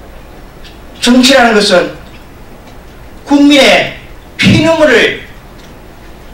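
A middle-aged man speaks loudly and emphatically into a microphone, in short bursts.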